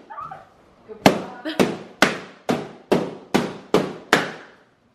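Balloons pop sharply one after another.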